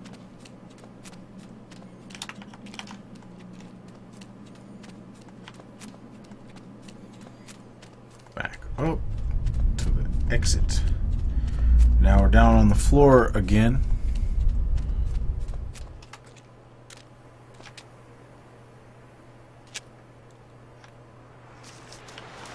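Footsteps crunch steadily on stony ground.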